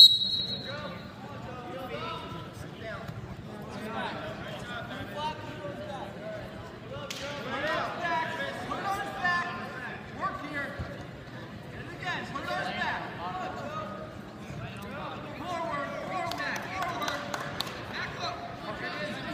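Spectators shout and cheer encouragement.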